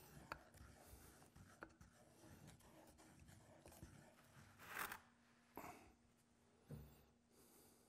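A stick scrapes and knocks inside a metal pot.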